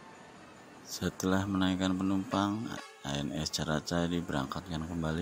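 A bus horn plays a loud, changing tune.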